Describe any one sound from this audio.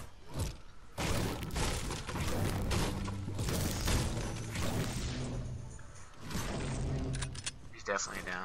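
A pickaxe strikes wood again and again.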